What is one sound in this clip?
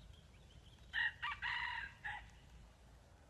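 A rooster crows nearby.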